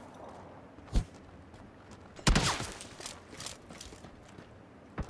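Footsteps crunch quickly on the ground.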